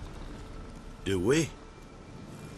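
A young man answers briefly.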